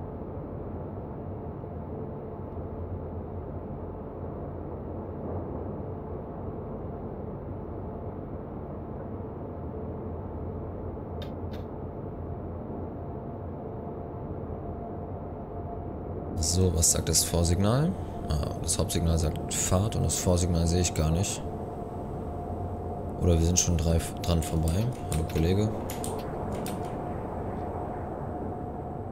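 A train's electric motor hums steadily.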